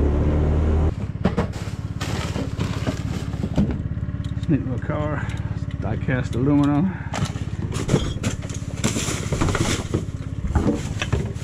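Plastic rubbish bags rustle and crinkle as hands rummage through them.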